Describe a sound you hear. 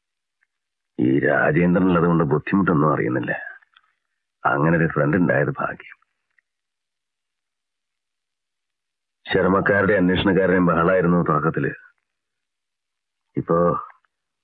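A man speaks weakly and slowly, close by.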